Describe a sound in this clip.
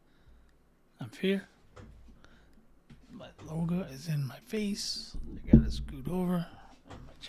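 A middle-aged man talks casually, close into a microphone.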